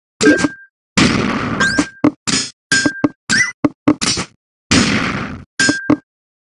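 Video game sound effects whoosh as rows of blocks clear.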